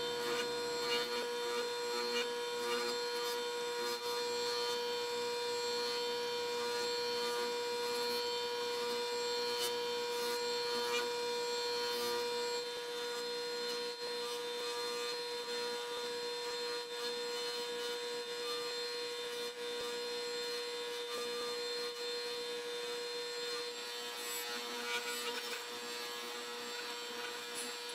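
A bench grinder motor hums steadily as a wire wheel spins.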